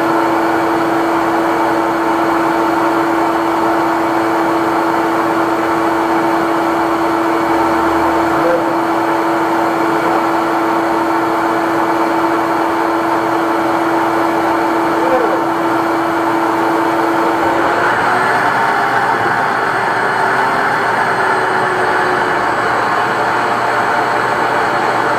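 A machine motor drones loudly and steadily nearby.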